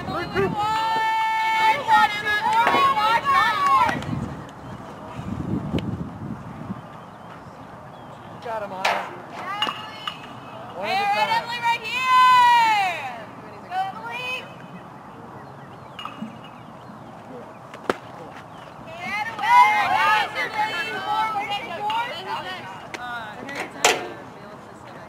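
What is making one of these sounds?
Young women chant and cheer loudly from nearby.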